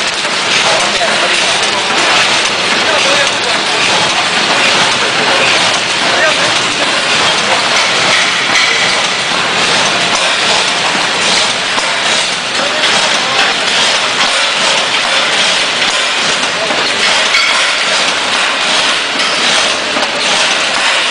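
A packaging machine clatters and hums steadily nearby.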